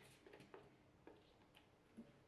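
Food pieces tumble from a plastic container into a glass bowl.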